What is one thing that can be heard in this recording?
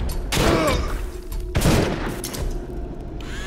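Loud crashes and bangs ring out.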